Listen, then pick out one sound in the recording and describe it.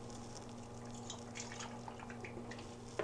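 Dry flakes pour from a carton into a bowl.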